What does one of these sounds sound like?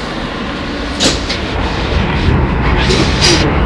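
Metal rattles and clanks inside a moving train car.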